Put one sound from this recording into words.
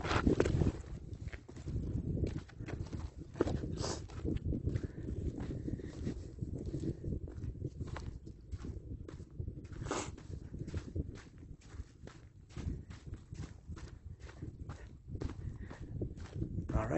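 Footsteps crunch on loose gravel and rock.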